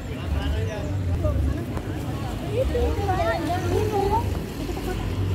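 Women talk nearby as they walk past.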